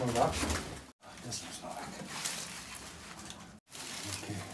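Dry branches rustle and crackle.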